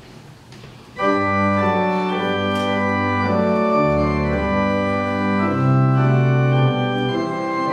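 A pipe organ plays loud, sustained chords.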